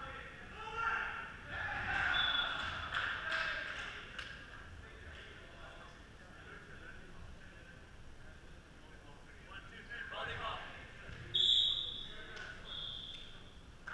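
Young men call out and talk in a large echoing hall.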